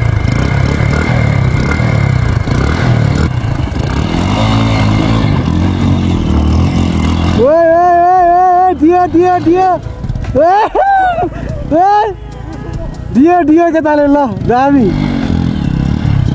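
A motorcycle engine rumbles close by.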